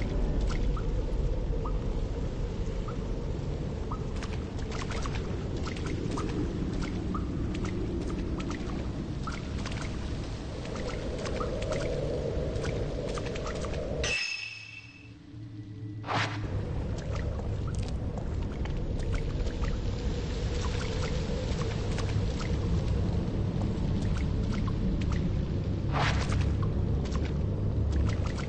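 Footsteps crunch steadily on rough ground.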